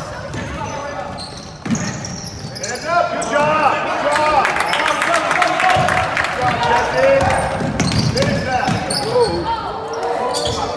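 Spectators murmur and call out in an echoing gym.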